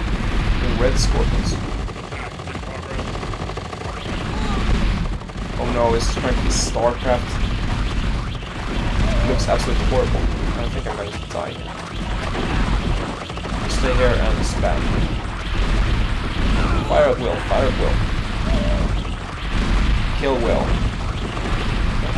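Gunfire crackles in a battle.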